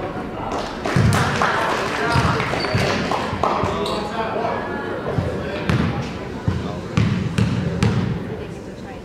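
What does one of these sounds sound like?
A basketball bounces with dull thuds on a hardwood floor.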